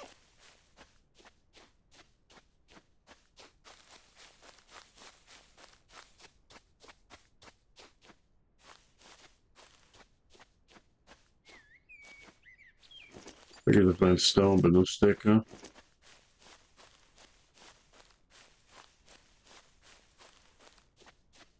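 Footsteps patter quickly over dirt and grass.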